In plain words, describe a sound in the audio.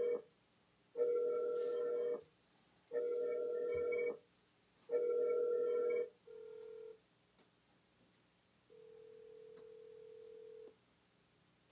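A portable speaker gives out a series of short electronic tones.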